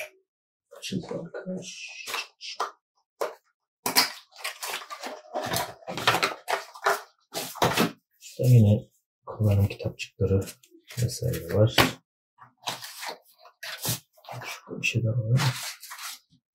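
Cardboard packaging rustles and scrapes.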